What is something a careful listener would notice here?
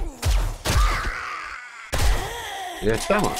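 A rifle fires loud gunshots.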